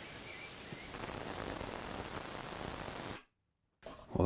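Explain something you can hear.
An ultrasonic cleaner gives off a steady high whine.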